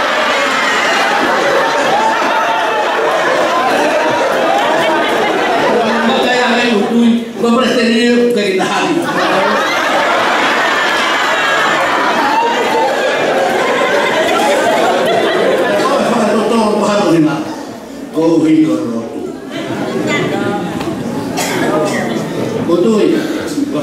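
An elderly man preaches with animation through a microphone in an echoing hall.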